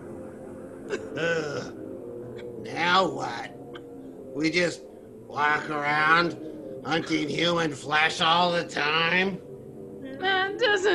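Several men talk with animation over an online call.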